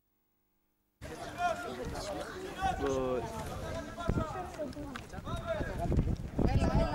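Spectators talk and call out close by, outdoors.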